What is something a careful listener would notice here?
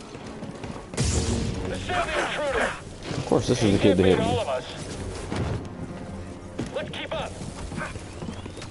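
A lightsaber hums and swooshes as it swings.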